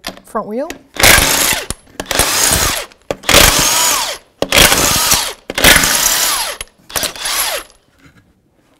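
An impact wrench whirs and hammers in loud bursts.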